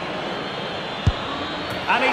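A football is struck with a sharp thud.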